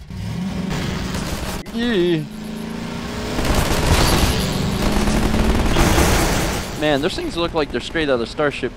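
A buggy engine hums and revs as the vehicle drives.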